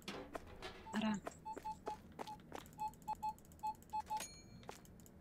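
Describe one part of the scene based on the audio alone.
A cash register beeps in short repeated tones.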